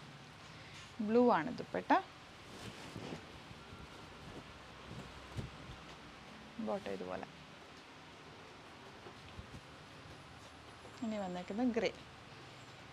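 A young woman speaks in short, lively bursts close by.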